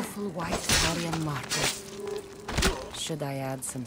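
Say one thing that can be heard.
A blade slashes and strikes a body.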